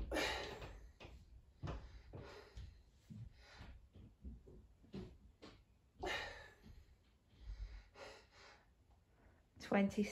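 A man breathes hard and grunts with effort close by.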